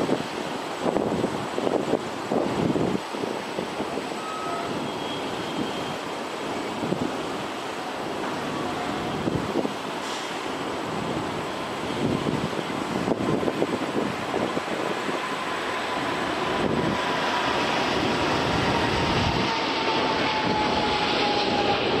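A large jet airliner roars as it comes in to land, growing louder.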